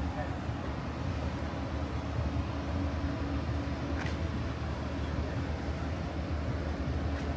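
A van engine idles steadily nearby.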